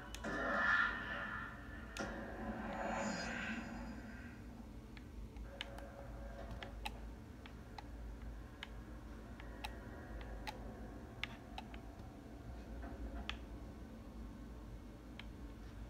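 A video game's sound effects play from a television speaker, with sharp clicks and thuds.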